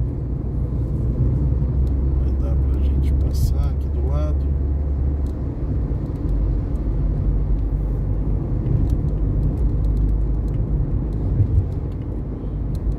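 Tyres roll on asphalt with a low rumble.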